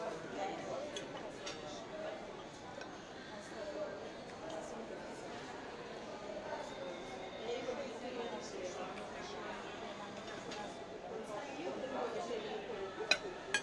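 Metal forks clink and scrape on ceramic plates.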